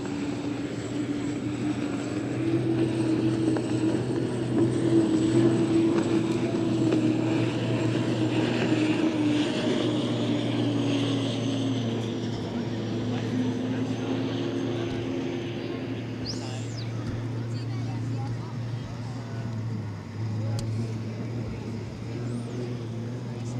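A racing boat's engine roars loudly as it speeds past and fades into the distance.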